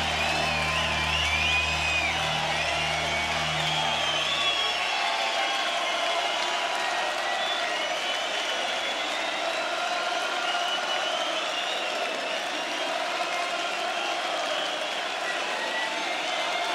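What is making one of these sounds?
A huge crowd cheers and roars loudly in a vast open-air arena.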